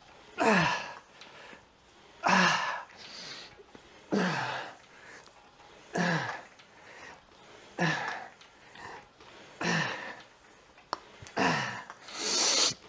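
A man grunts and groans with effort in rhythmic bursts, close to a microphone.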